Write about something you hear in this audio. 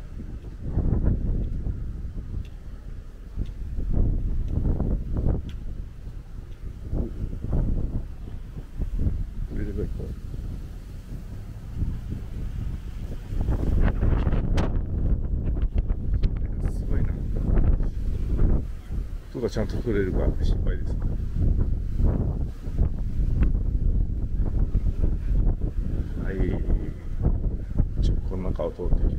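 Wind buffets the microphone in strong gusts outdoors.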